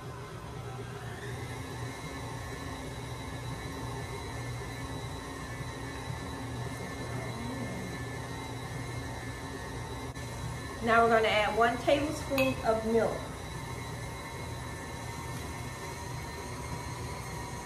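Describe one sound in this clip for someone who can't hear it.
A stand mixer starts up and whirs steadily.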